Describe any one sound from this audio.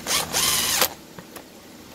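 A cordless impact driver whirs in a short burst.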